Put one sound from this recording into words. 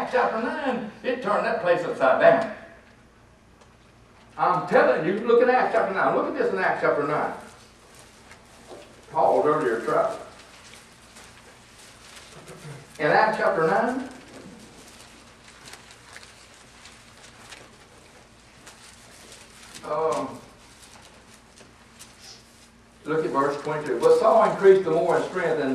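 An elderly man speaks calmly into a microphone in short bursts with pauses.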